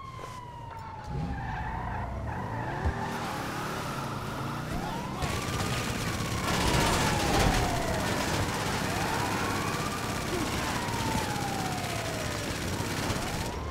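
A car engine revs as the car accelerates.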